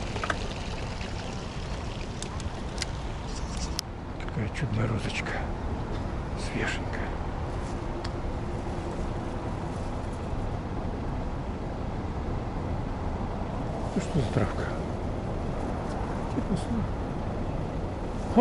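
Wind blows steadily outdoors and buffets the microphone.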